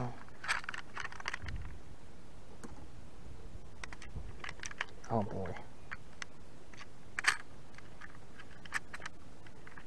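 A small plastic scale clicks and rattles in a hand.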